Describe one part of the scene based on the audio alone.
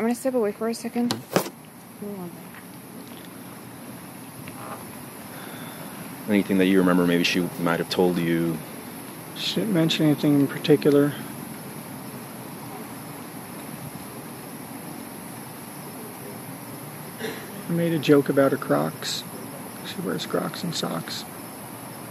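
A man speaks calmly, heard through a recording.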